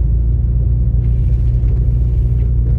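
A windshield wiper swishes across the glass.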